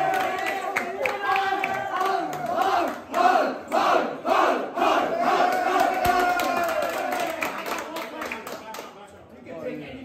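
Young men clap their hands.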